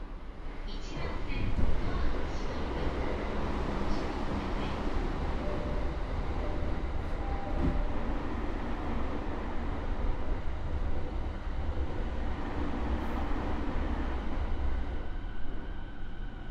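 A train rushes past close by with a loud, roaring rumble.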